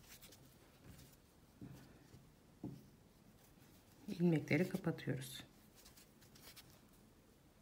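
A crochet hook pulls yarn through stitches.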